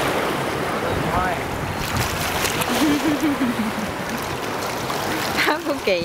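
A dog splashes through shallow water close by.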